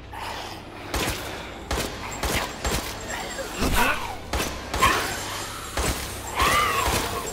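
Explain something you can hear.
Gunshots ring out loudly in an echoing space.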